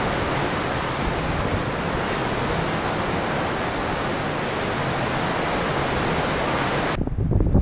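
Water churns and rushes loudly in a ship's wake.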